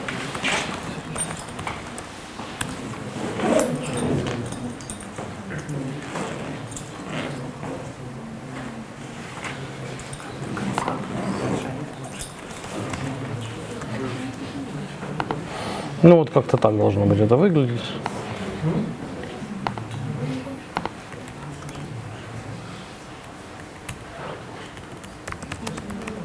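A man types on a laptop keyboard.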